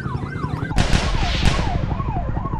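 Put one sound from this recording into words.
An assault rifle fires shots.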